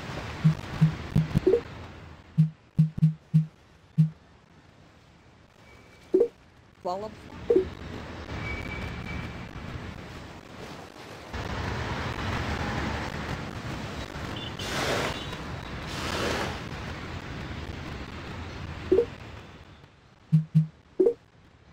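Short electronic blips sound as menu items are selected.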